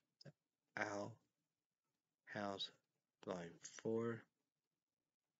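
A young man speaks calmly and close up, in short bursts with pauses.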